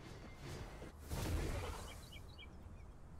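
A sharp magical whoosh swells and fades.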